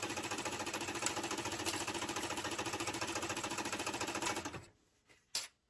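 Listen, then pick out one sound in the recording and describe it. A sewing machine runs with a steady, rapid whir.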